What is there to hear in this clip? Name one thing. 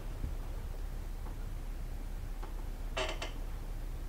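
Soft footsteps pad on a rug.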